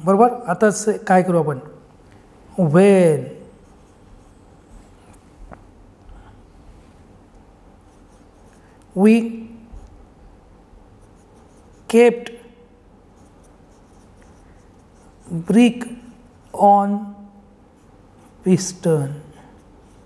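A marker pen squeaks softly on paper.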